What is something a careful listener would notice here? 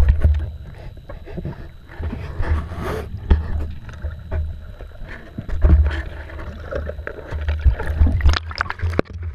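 Water splashes and churns close by.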